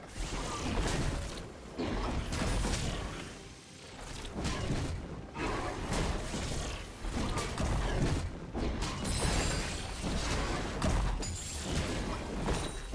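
Video game spell effects blast and crackle in bursts during a fight.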